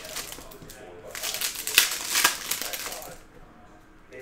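Trading cards rustle and slide as they are handled.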